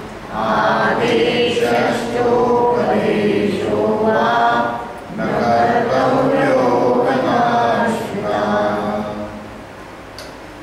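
An elderly woman speaks close to a microphone, in a steady, earnest voice.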